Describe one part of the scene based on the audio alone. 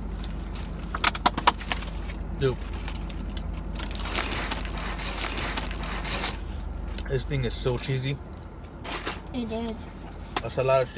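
Paper wrappers crinkle and rustle close by.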